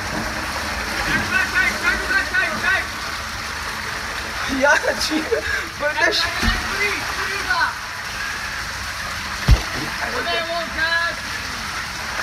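A young man talks and laughs excitedly close by.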